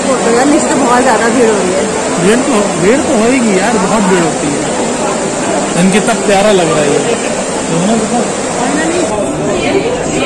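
Water pours down steadily in a rushing cascade.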